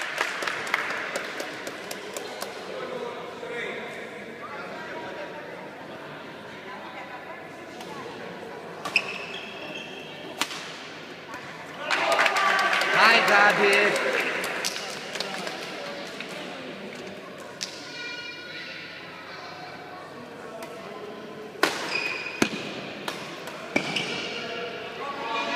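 Badminton rackets strike a shuttlecock back and forth in a large echoing hall.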